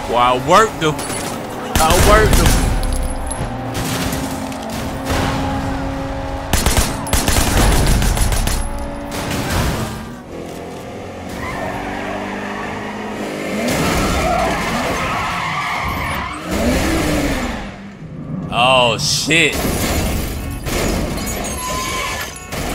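A car engine roars at speed.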